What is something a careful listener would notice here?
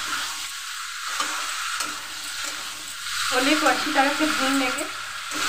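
A spatula scrapes and stirs against a metal pan.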